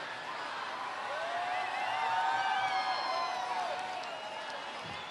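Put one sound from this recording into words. People in a crowd whistle loudly.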